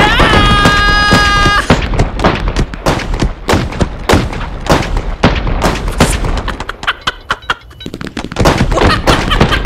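Fireworks crackle and bang rapidly, close by.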